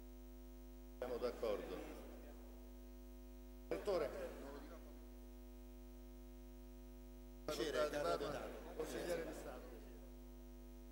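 A man speaks briefly through a microphone in an echoing hall.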